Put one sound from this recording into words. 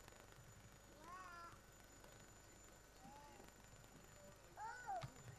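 A young child babbles and calls out in a high voice nearby.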